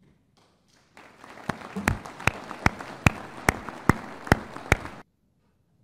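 A large crowd applauds in a large hall.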